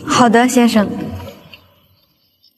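A young woman speaks calmly and politely, close by.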